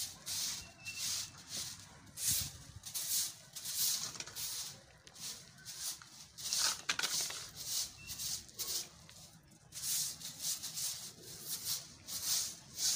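A broom sweeps a hard floor with quick, rhythmic swishes.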